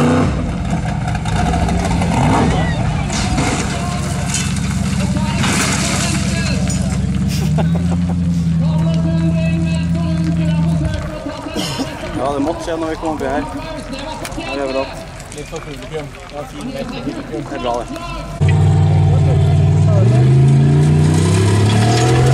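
Stones and gravel clatter under spinning tyres.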